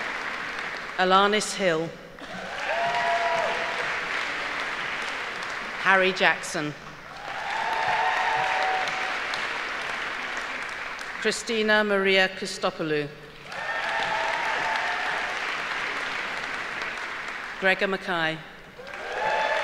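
A middle-aged woman reads out names through a microphone and loudspeaker in a large echoing hall.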